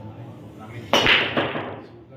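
A cue ball smashes into a rack of pool balls with a loud crack.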